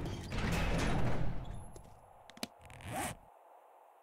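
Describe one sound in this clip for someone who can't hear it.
A menu opens with a short click.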